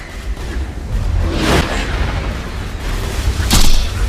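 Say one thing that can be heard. Electric blasts crackle and zap.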